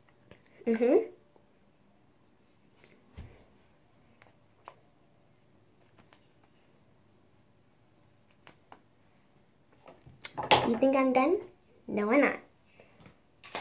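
A young girl speaks briefly and softly, close by.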